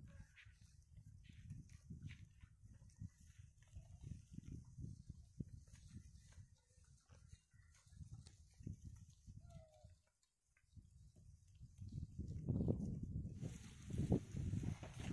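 Hooves shuffle and crunch over dry ground as a herd of cattle walks.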